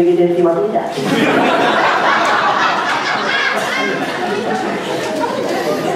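An audience laughs and applauds in a hall.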